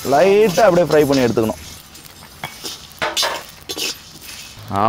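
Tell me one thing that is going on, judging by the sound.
A spatula scrapes and stirs seeds in a metal pan.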